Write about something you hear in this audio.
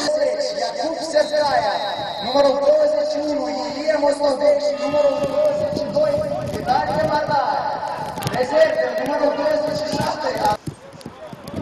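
A crowd of spectators chants loudly outdoors.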